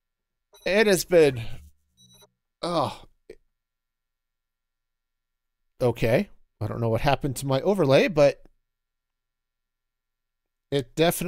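A man speaks casually into a close microphone, in short bursts with pauses.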